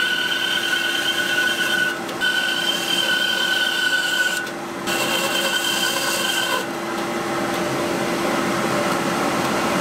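A band saw hums steadily.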